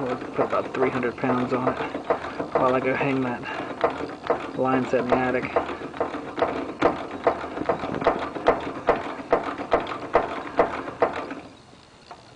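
A ratchet wrench clicks rapidly as it turns a valve fitting.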